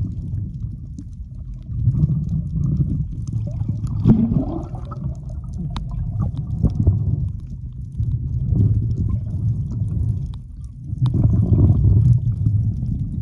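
Water rushes and gurgles in a low, muffled underwater wash.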